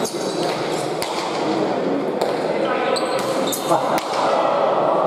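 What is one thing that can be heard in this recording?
A hard ball smacks loudly against a wall and the floor, echoing through a large hall.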